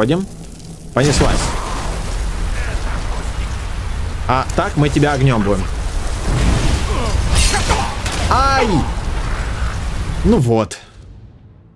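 A loud magic blast roars and rumbles.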